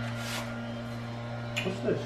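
A broom sweeps across a rug.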